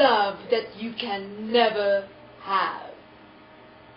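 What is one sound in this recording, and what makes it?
A young woman speaks up close, fiercely and with animation.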